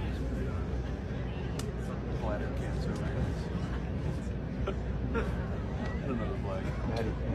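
A crowd murmurs and chatters in the distance.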